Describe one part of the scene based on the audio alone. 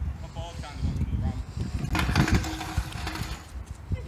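A scooter clatters onto the concrete as a boy falls.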